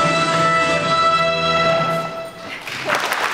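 A choir and orchestra hold a final sustained chord in a large echoing hall.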